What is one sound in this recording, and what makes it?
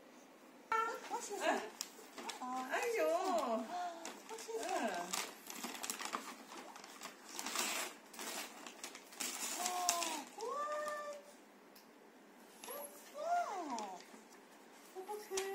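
Wrapping paper rustles and tears as a small child pulls at a gift.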